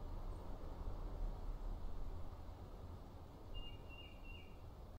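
Wind blows steadily outdoors with a low rumble.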